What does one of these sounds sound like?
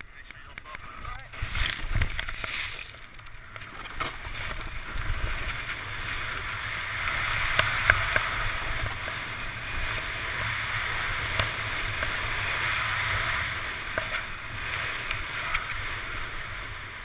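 A snowboard hisses and scrapes over snow.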